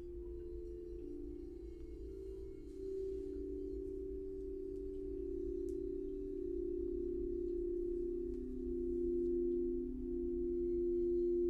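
Crystal singing bowls ring with steady, overlapping humming tones that slowly swell.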